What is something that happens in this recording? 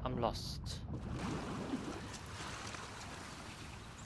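Water laps and splashes around a swimmer at the surface.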